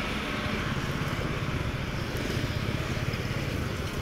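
A motorbike engine hums as it rides past.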